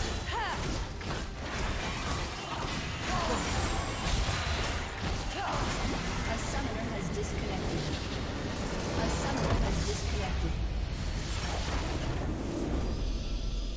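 Spell and combat effects crackle and clash in a fast battle.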